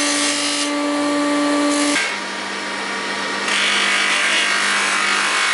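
A polishing wheel whirs steadily on an electric motor.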